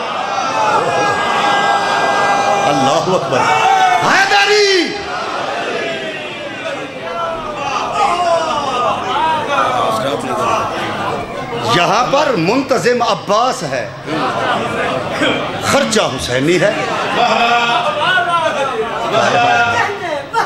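A crowd of men calls out in response.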